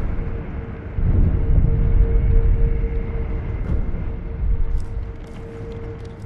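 A deep magical whoosh swells and rumbles, then fades.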